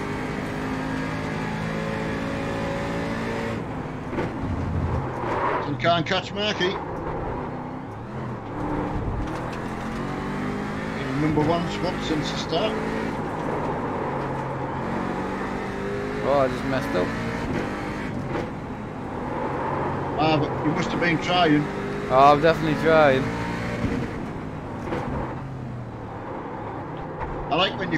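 A racing car engine roars steadily, rising and falling in pitch.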